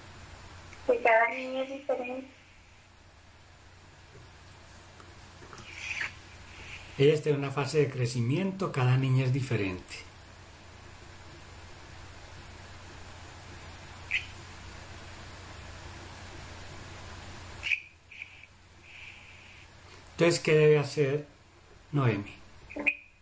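An elderly man speaks calmly over an online call, in short bursts.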